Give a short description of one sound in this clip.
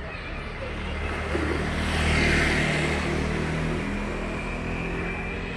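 A motorbike engine hums along a street nearby.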